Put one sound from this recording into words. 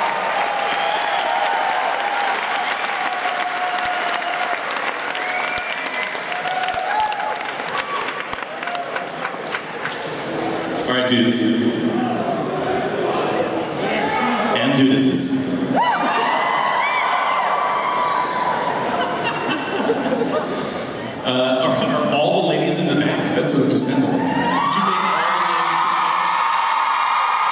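A rock band plays loudly in a large hall.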